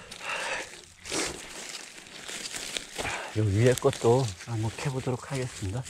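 Dry grass and roots rustle and crackle as hands pull at them in loose soil.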